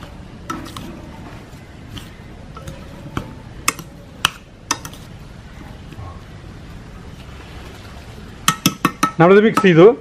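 A metal spoon scrapes and clinks against a pot.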